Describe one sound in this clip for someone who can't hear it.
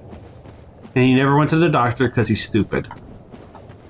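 A man speaks through a close microphone.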